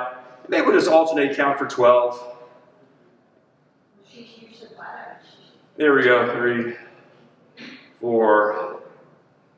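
A middle-aged man speaks calmly and clearly close by, in short phrases with pauses.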